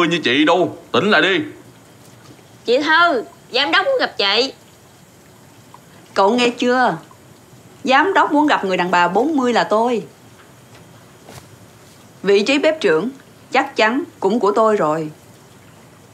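A young woman speaks tensely and argumentatively, close by.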